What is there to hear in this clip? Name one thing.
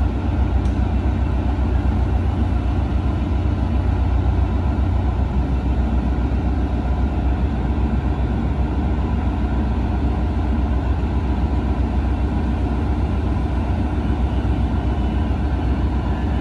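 A diesel locomotive idles with a deep, steady rumble close by.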